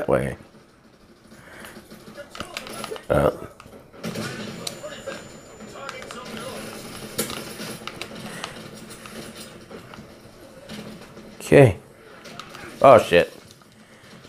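Gunshots from a video game crack through a television speaker.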